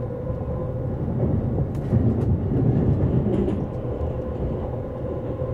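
A passing train rushes by close outside with a loud whoosh.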